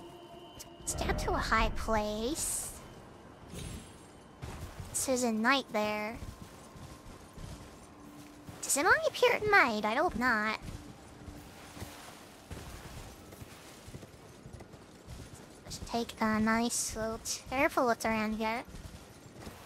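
A young woman speaks animatedly into a microphone in high, sing-song bursts.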